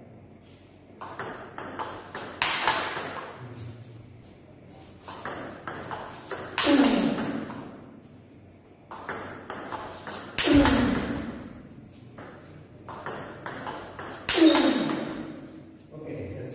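A ping-pong ball clicks sharply off paddles and the table in a quick rally.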